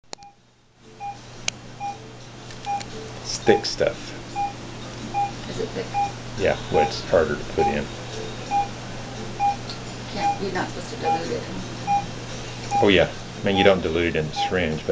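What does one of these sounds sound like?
A medical monitor beeps steadily at an even pace.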